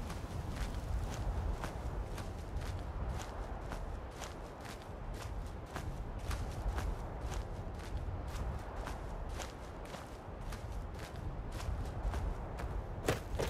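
Footsteps crunch steadily through dry grass and brush.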